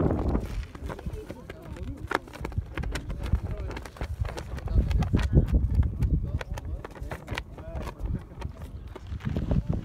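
A flag flaps in the wind.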